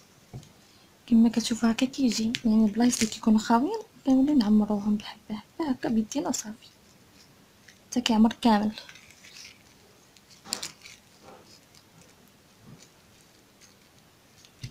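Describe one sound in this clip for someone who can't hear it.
Fingers handle a stiff beaded sequin trim with a faint rustle.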